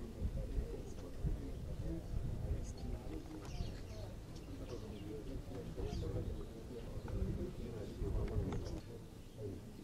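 A man speaks calmly nearby.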